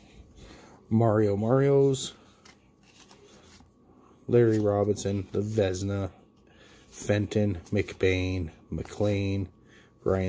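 Cardboard cards slide and flick against each other.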